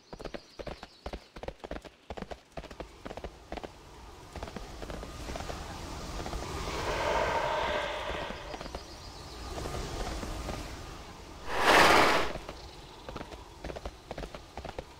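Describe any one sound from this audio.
Footsteps crunch quickly on dry, rocky ground.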